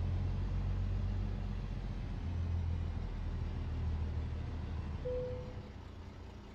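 A truck engine idles with a low, steady rumble and then fades.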